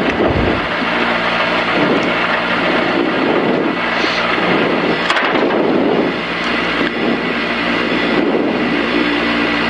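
A rally car engine roars loudly from inside the cabin.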